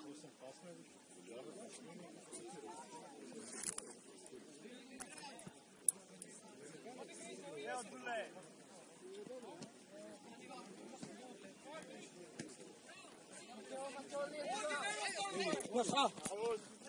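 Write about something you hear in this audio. Players call to each other across an open field in the distance.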